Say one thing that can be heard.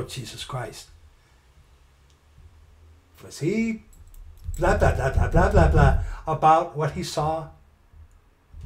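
A middle-aged man talks and laughs close to a microphone.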